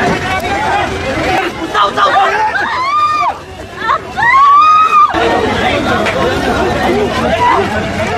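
A crowd of men shouts and clamours close by in a scuffle.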